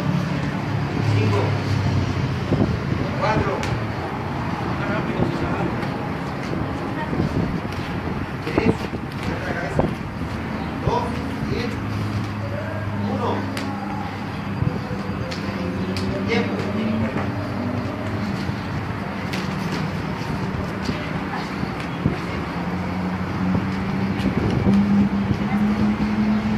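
Sneakers scuff and squeak on a concrete floor.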